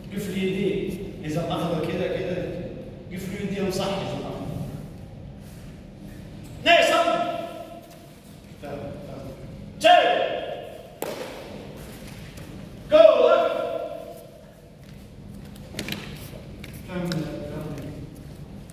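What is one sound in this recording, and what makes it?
A man calls out commands loudly.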